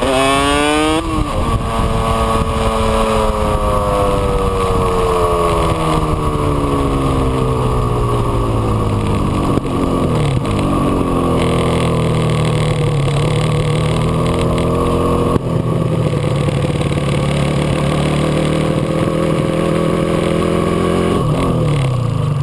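A two-stroke twin motorcycle engine revs up and then winds down as the bike slows.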